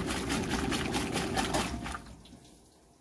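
A washing machine churns clothes in sloshing water.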